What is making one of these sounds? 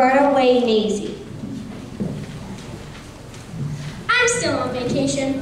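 Children sing together in an echoing hall.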